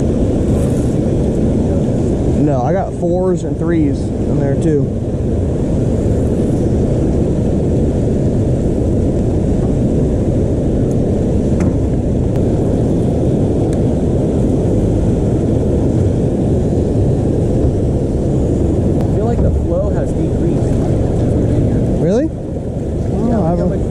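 Fast river water rushes and churns steadily.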